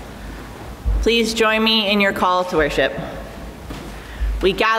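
A woman sings into a microphone in a reverberant hall.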